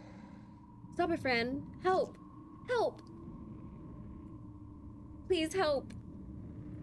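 A young woman speaks with animation into a close microphone.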